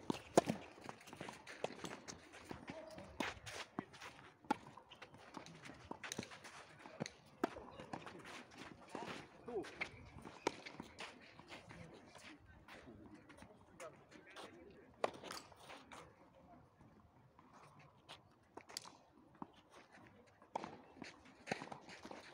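Tennis balls bounce on a clay court.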